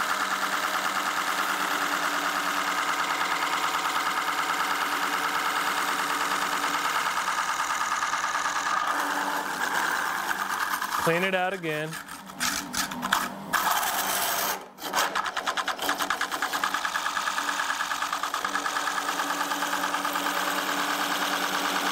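A lathe hums steadily as it spins.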